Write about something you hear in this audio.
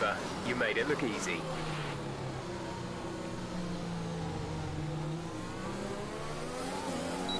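A racing car engine whines steadily, shifting pitch.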